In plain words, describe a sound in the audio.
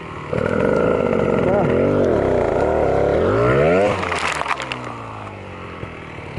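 Another dirt bike engine revs a short way ahead.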